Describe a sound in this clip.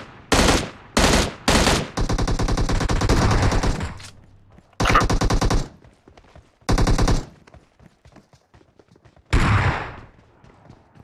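Loud rifle shots ring out in bursts and rapid strings.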